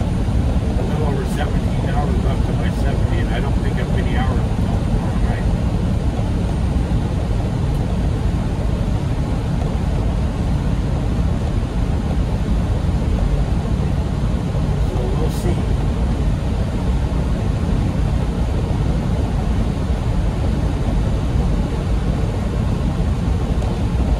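Tyres roar steadily on the highway.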